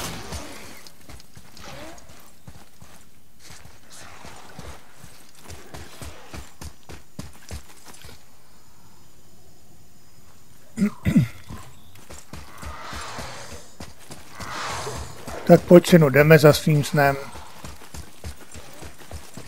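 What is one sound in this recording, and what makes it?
Heavy footsteps thud steadily on a stone floor.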